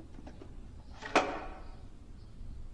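A wooden box lid clicks open.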